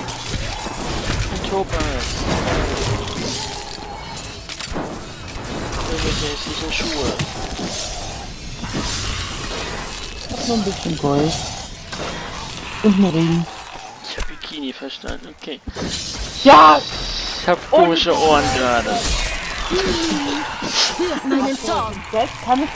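Magic blasts burst and crackle during a fight.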